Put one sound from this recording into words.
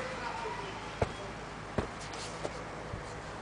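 A hollow plastic object knocks sharply against a plastic box several times.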